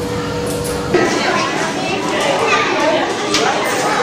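A serving spoon clinks against metal trays.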